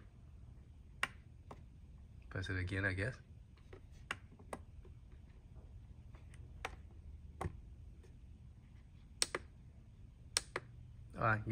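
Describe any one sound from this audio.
Plastic arcade buttons click as they are pressed.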